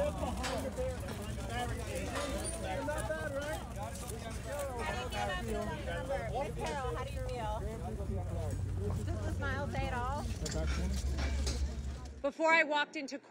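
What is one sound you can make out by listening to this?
A crowd chatters and calls out around outdoors.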